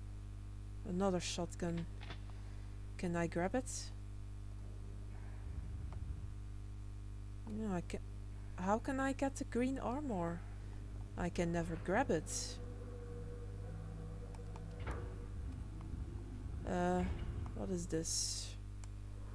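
A young woman talks casually into a close microphone, in short bursts.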